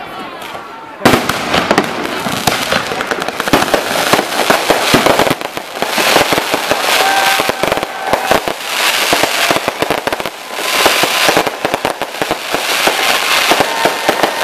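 Fireworks crackle and fizz in rapid sputters.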